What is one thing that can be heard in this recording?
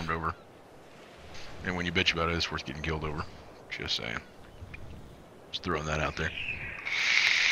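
A man talks casually and close into a microphone.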